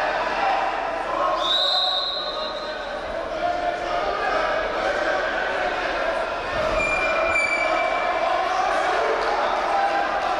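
A large crowd murmurs and cheers in a big echoing hall.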